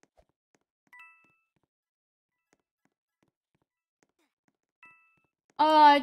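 A game chimes with short tones.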